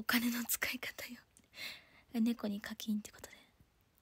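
A young woman laughs.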